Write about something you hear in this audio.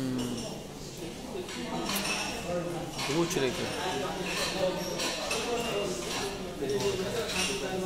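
A man speaks calmly and close to a phone microphone.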